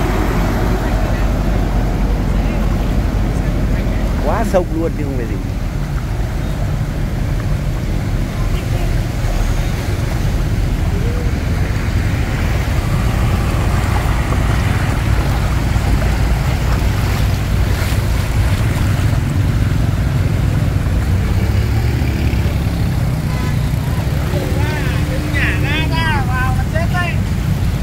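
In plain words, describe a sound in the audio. Flood water sloshes and splashes around wheels.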